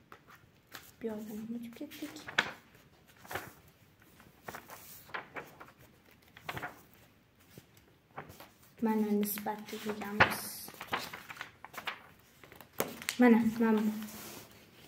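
A young girl speaks briefly close by.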